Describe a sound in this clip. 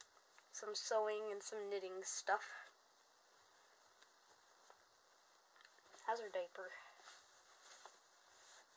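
Soft fabric rustles as clothes are handled.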